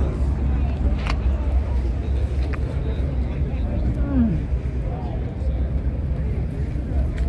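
People chatter faintly in the distance outdoors.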